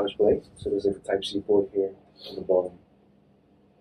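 A young man speaks calmly and clearly into a nearby microphone.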